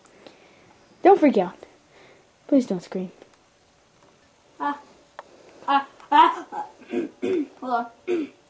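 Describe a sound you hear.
A young child talks up close in a high voice.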